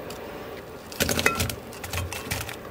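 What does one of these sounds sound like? Sliced onions tumble into a pan.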